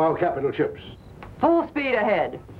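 A woman speaks calmly.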